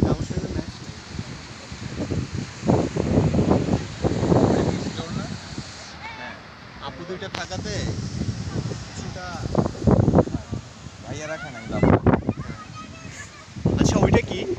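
Waves wash onto the shore.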